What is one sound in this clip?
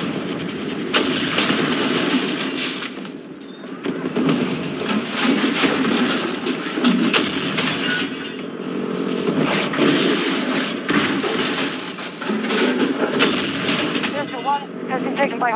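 A heavy cannon fires in loud booming blasts.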